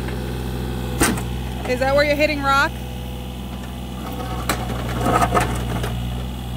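An excavator bucket scrapes and thumps into dirt.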